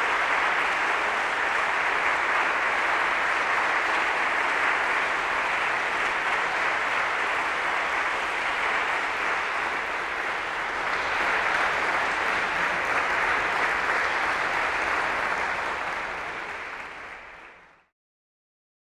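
A large audience applauds in an echoing hall, then the applause fades out.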